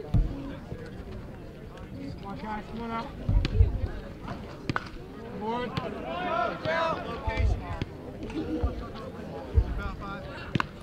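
Players and spectators shout and call out outdoors, some way off.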